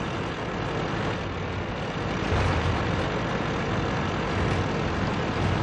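A tank engine rumbles steadily as the tank drives.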